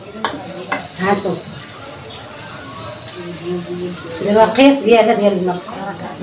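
Water pours from a kettle into a pot.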